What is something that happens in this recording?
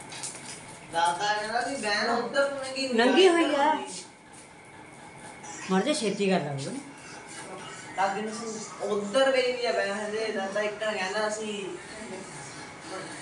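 A woman talks nearby with animation.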